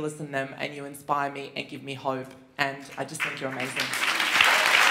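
A woman speaks into a microphone over a loudspeaker in a large hall.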